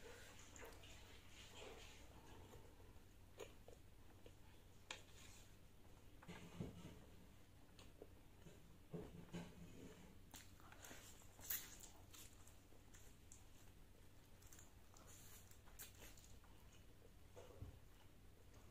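A woman chews food with soft, wet mouth sounds close to a microphone.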